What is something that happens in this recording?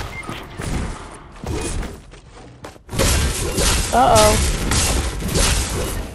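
A pickaxe strikes with sharp metallic hits.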